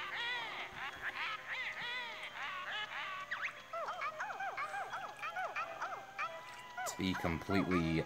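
Cartoonish game characters babble in high, squeaky voices.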